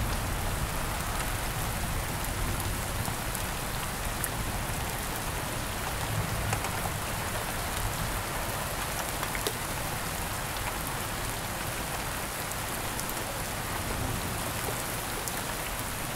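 Thunder rumbles low in the distance.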